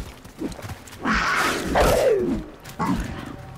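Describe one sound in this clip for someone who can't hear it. A big cat snarls and roars up close.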